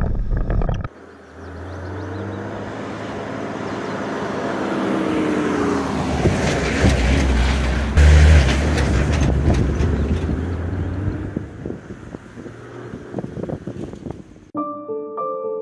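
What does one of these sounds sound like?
An off-road vehicle approaches, rumbles past close by and drives off.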